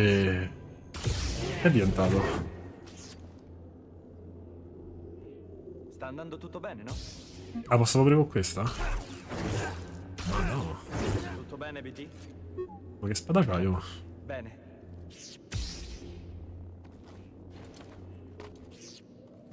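A lightsaber hums and swooshes as it swings.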